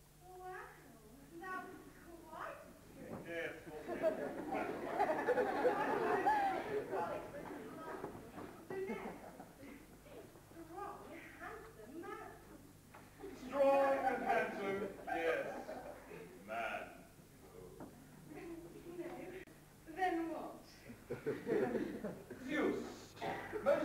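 A young woman speaks lines on a stage, heard from afar in a large hall.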